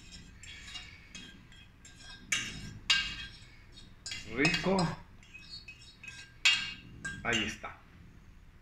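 A metal spoon scrapes and taps against a pan.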